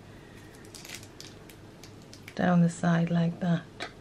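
A knife slices softly through sponge cake.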